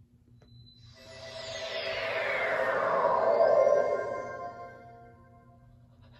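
A shimmering magical whoosh sweeps downward and fades.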